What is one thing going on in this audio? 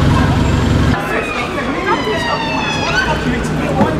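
A siren wails nearby.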